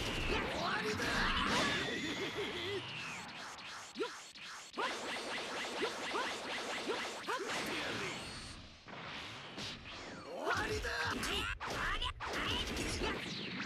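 Punches land with sharp, heavy thuds.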